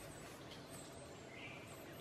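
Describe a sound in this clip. A bird flaps its wings.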